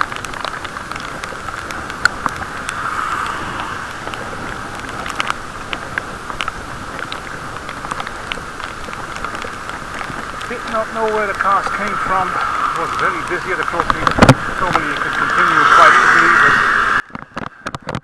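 Wind rushes past outdoors.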